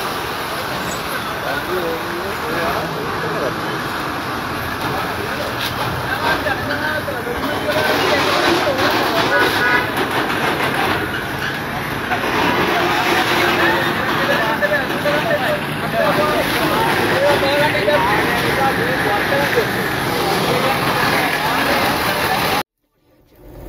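Several men talk loudly and excitedly close by, outdoors.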